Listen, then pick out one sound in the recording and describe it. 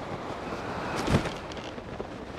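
A glider snaps open with a sharp whoosh.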